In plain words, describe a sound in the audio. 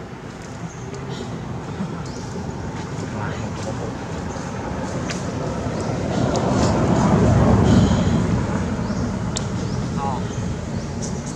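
A monkey gives short, high squeaking calls close by.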